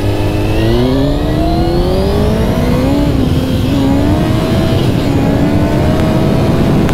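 A motorcycle engine revs up close, rising in pitch as it speeds up.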